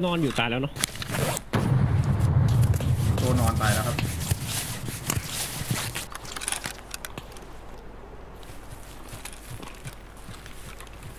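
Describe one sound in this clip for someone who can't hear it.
Leaves and branches rustle as someone pushes through dense bushes.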